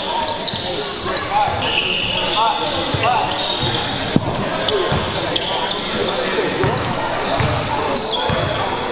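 A basketball bounces on a hardwood floor.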